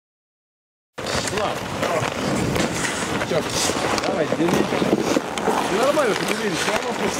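Hockey sticks clack on ice.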